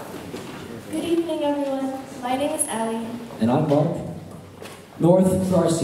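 A young woman speaks calmly through a microphone and loudspeakers.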